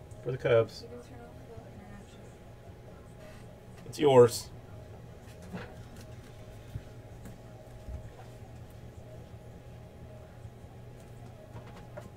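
A hard plastic card case clicks and rubs softly in someone's hands.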